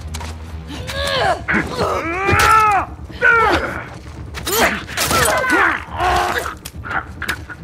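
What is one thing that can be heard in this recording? Blows land with heavy thuds in a fight.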